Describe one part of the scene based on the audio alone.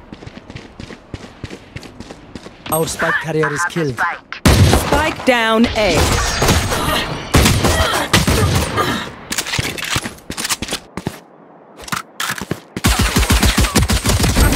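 A pistol fires several quick shots.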